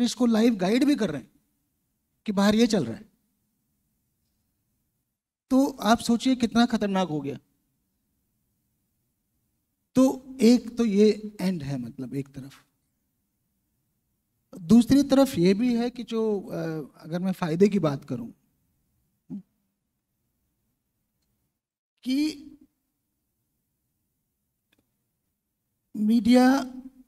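A man speaks calmly into a microphone in short bursts with long pauses.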